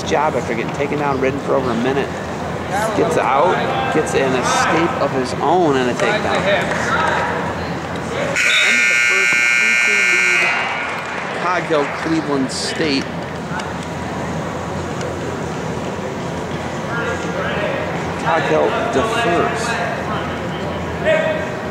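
Men and women talk with animation in a large echoing hall.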